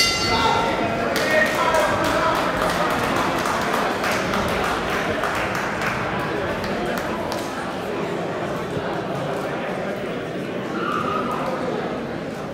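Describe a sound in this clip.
Gloved punches thud against bodies.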